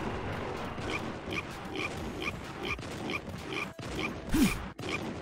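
Footsteps patter quickly on wooden planks.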